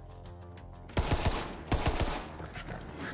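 A gun fires a quick burst of loud shots.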